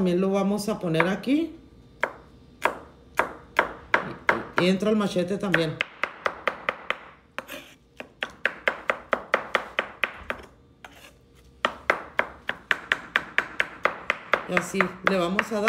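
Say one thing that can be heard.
A cleaver chops rapidly on a wooden board with sharp knocks.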